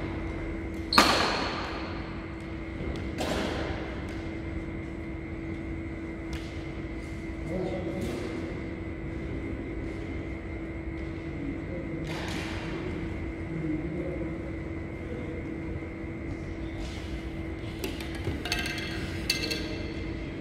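Shuttlecocks are struck with rackets, with sharp pops echoing in a large hall.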